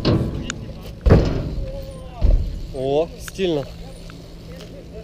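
Bike tyres roll over pavement outdoors.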